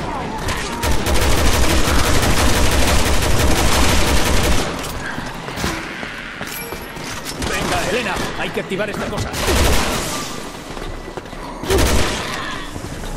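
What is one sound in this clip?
A gun fires in rapid bursts, loud and close.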